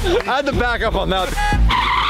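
A man shouts excitedly close by.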